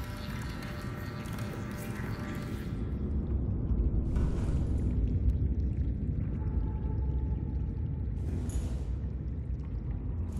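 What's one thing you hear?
A deep mechanical hum drones steadily.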